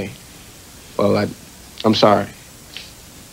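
A second young man answers briefly, close by.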